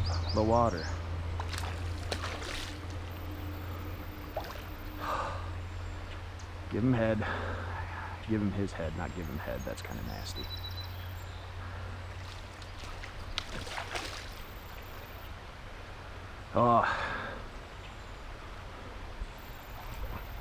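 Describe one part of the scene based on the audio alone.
Shallow river water ripples and gurgles steadily close by.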